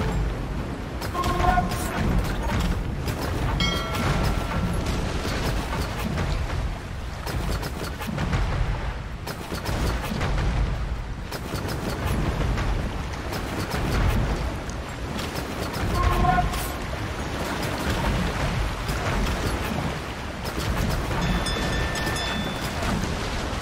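Ship cannons fire in repeated booms.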